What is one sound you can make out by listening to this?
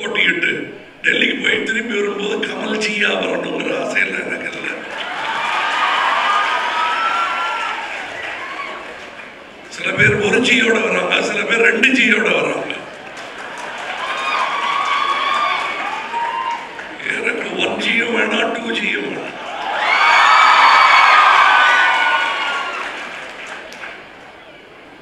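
A middle-aged man speaks with animation through a microphone in an echoing hall.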